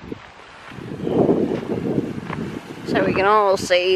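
Small waves lap against a pebble shore.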